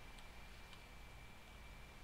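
Water rushes over rocks in a stream.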